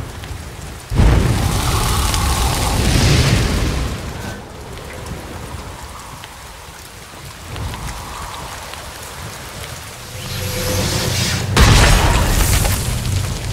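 Bombs explode with roaring bursts of fire.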